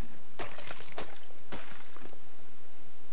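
A hatchet chops into a carcass with sharp, wet thuds.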